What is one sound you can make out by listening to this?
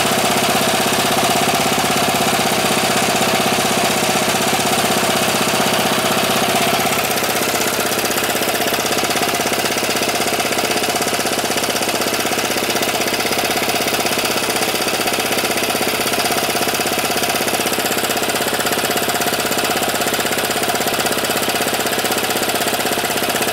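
An engine idles close by with a steady, rapid clatter.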